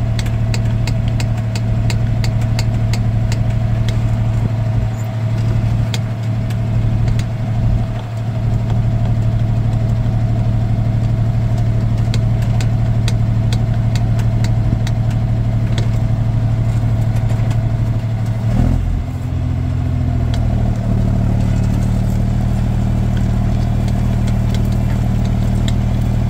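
Metal parts of a plough clink and rattle.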